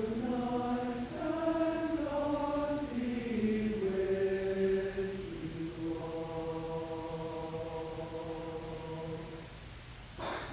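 A choir sings slow, held chords in a large hall.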